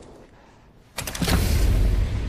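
A heavy lever clunks into place.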